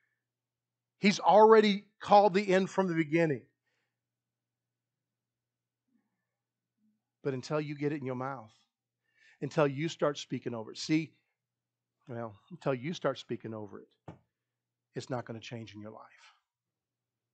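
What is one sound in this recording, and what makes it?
A man speaks with animation into a microphone, with pauses between phrases.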